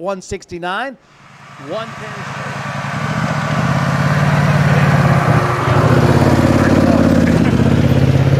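An all-terrain vehicle engine idles nearby with a steady low rumble.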